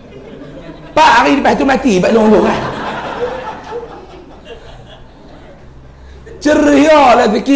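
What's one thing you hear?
A young man speaks with animation into a microphone in a room with a slight echo.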